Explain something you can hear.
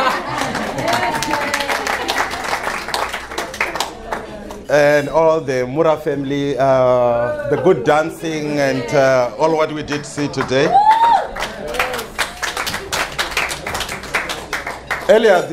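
People laugh and clap their hands.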